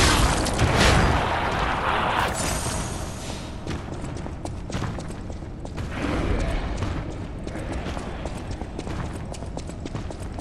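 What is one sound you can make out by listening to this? Heavy armoured footsteps clank on a stone floor.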